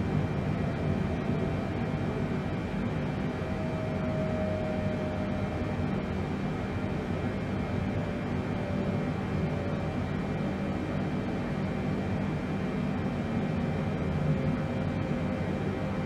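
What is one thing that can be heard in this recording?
Jet engines drone steadily with a low rumble.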